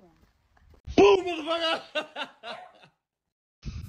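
A young woman laughs excitedly close by.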